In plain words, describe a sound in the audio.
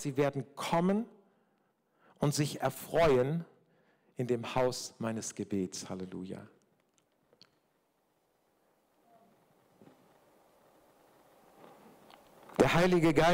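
An older man speaks through a microphone in an even, preaching manner, with pauses.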